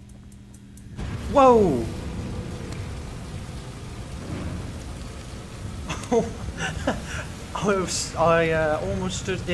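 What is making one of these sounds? A fire roars steadily in a furnace.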